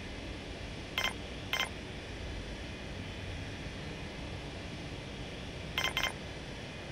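Short electronic interface clicks sound.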